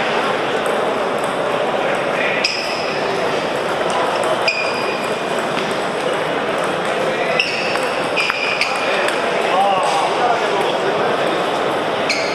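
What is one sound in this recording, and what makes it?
Table tennis balls click sharply against tables and bats in a large echoing hall.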